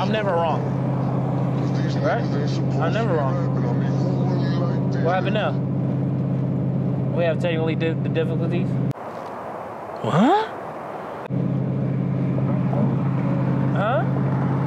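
A man speaks with animation close by.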